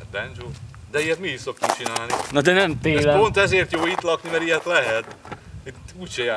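A young man talks loudly and with animation nearby.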